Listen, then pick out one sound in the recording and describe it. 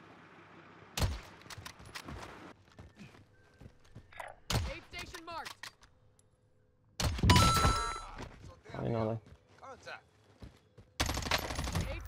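Rifle shots crack sharply now and then.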